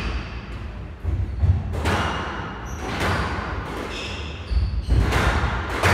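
A squash ball smacks against the walls in a hard echoing court.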